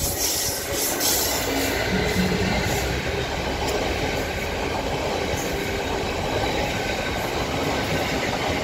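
Freight wagons rumble and clatter over the rails.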